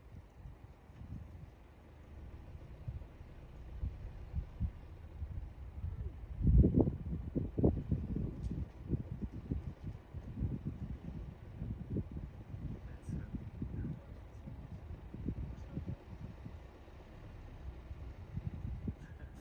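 A car rolls slowly over a rough road with a low rumble.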